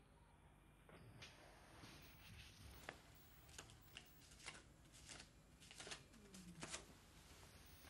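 Papers rustle and shuffle.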